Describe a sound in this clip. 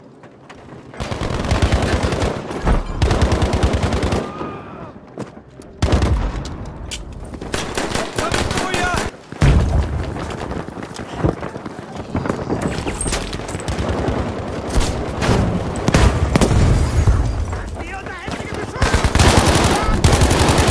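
Gunfire cracks in rapid, loud bursts.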